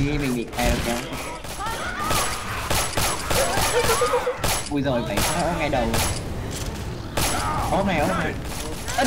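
Sniper rifle shots crack out again and again.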